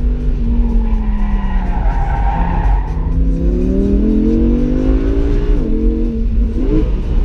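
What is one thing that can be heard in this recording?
A car engine roars from inside, revving up and down through the gears.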